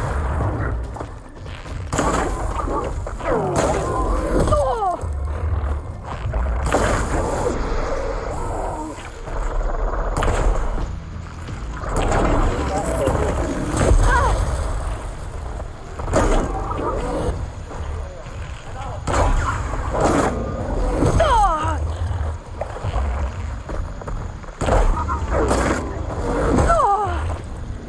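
A large machine creature stomps and roars.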